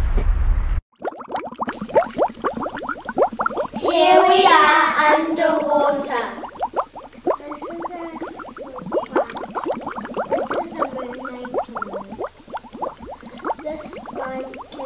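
Young girls speak together with animation, close by.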